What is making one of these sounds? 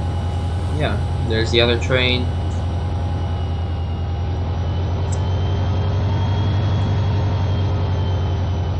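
A locomotive engine rumbles with a steady, throbbing beat.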